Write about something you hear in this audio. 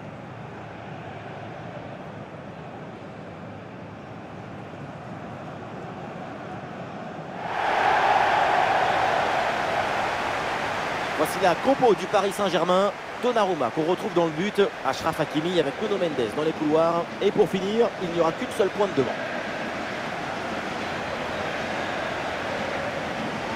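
A large stadium crowd roars and cheers, swelling louder partway through.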